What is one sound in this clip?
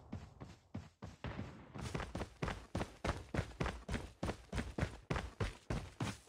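Quick footsteps run over dirt and grass in a steady rhythm.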